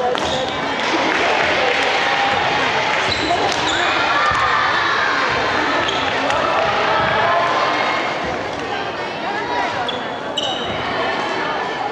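A crowd of young people chatters in a large echoing hall.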